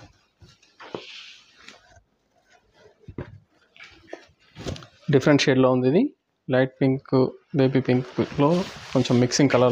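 A silk saree rustles as hands unfold it.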